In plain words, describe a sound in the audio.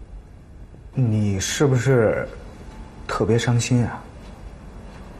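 A man speaks with feeling, close by.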